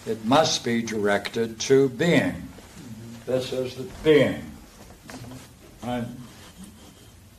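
An elderly man reads aloud and speaks in a calm voice, close by.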